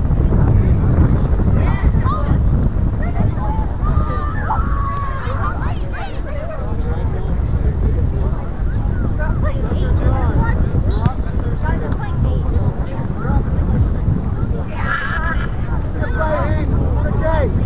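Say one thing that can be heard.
Young players shout to each other in the distance.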